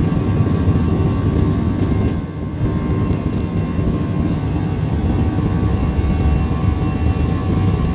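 A jet engine rumbles and whines steadily, heard from inside an aircraft cabin.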